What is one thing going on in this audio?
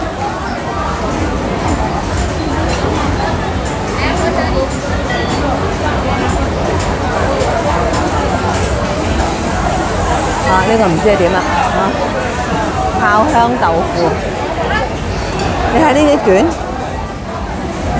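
Many voices chatter in a busy crowd all around.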